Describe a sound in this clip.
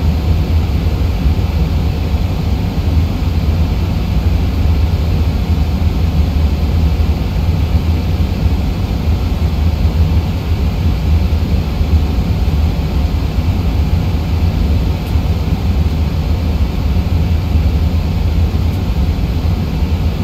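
Jet engines drone steadily with a low, deep rumble.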